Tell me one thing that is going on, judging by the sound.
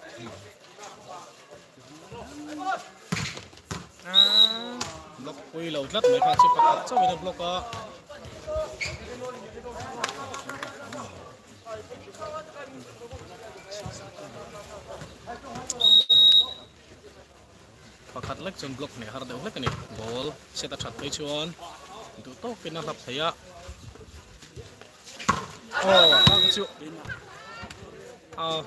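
Young men shout and call out to each other across an outdoor court.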